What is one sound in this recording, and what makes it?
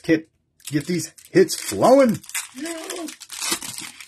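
A foil card pack tears open.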